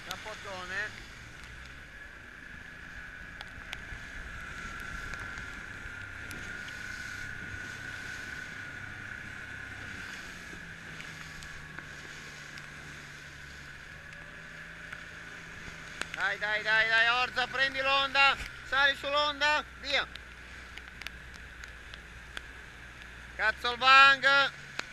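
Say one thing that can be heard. Choppy waves splash and slap against a boat.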